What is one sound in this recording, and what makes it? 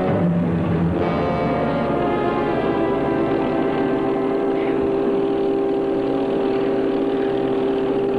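A car engine hums as the car drives.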